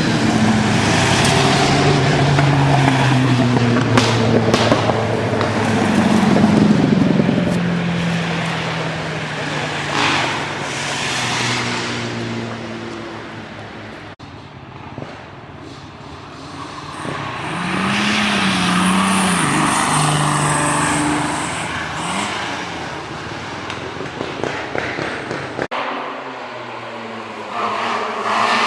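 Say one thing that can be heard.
Racing car engines roar loudly as cars speed past one after another.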